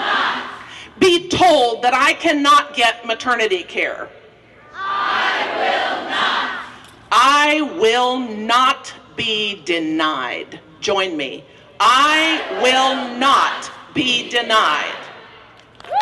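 An older woman speaks forcefully into a microphone through loudspeakers outdoors.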